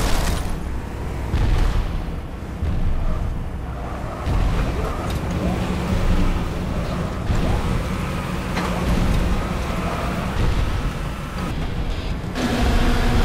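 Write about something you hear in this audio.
A vehicle engine rumbles steadily as it drives along.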